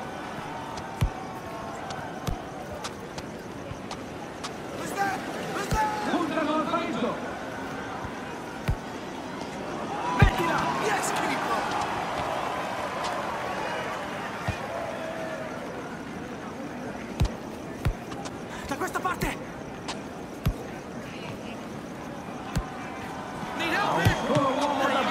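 A ball is kicked with sharp thuds now and then.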